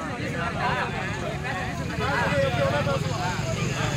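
A man argues loudly with a crowd.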